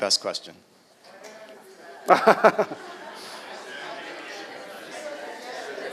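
An audience murmurs and chatters.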